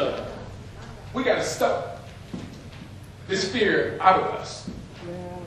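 A man preaches with animation into a microphone, his voice echoing in a large room.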